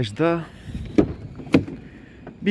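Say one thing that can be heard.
A van's rear door latch clicks open.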